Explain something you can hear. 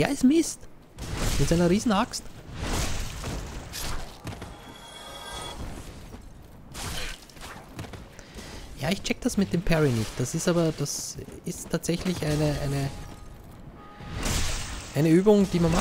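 Blades clash and slash in a fight.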